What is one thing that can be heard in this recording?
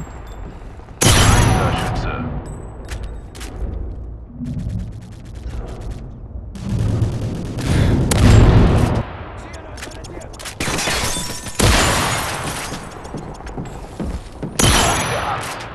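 A sniper rifle fires loud, sharp shots that echo.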